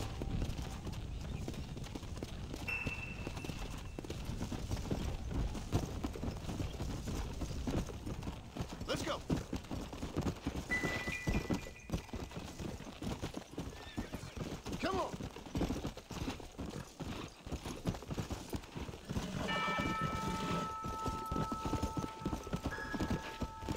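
Horse hooves gallop steadily over dirt.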